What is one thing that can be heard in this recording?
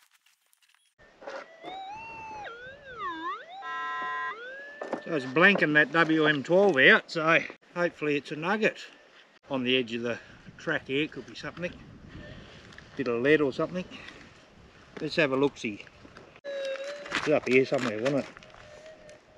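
A metal detector whines and warbles in rising and falling tones.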